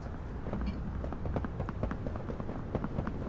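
Footsteps tap steadily on a hard path.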